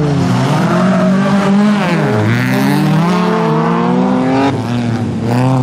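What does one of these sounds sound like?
Racing car engines roar loudly and rev up and down nearby.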